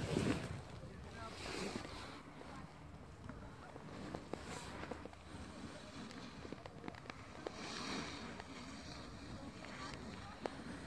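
Snowboards scrape and hiss across packed snow.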